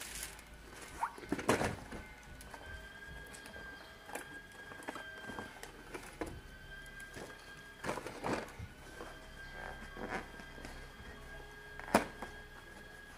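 Small plastic pieces tap and click against cardboard.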